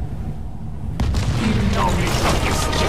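An explosion bursts with a deep roar.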